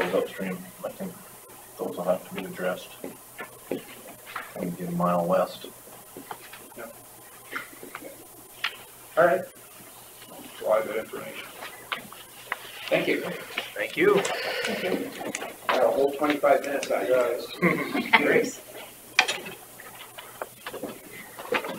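Middle-aged men talk calmly, heard through a distant room microphone.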